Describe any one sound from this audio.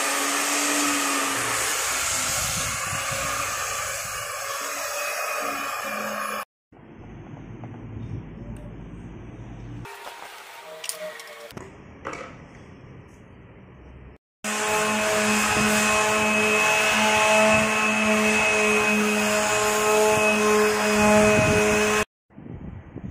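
An electric sander hums and whirs steadily against wood.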